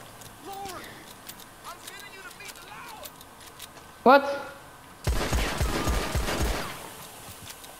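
Gunshots crack loudly, several times.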